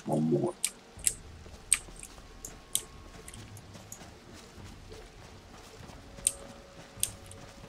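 Footsteps patter on the ground.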